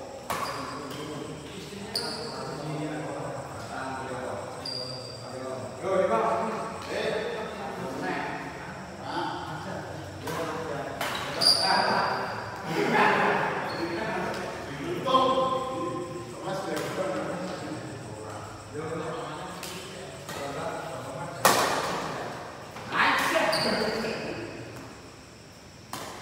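Men talk and call out in an echoing hall.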